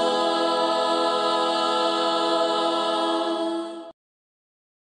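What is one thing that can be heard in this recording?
A group of young men and women sing together in harmony through microphones, holding a long chord.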